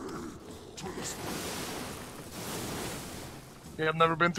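Fire roars in a short burst.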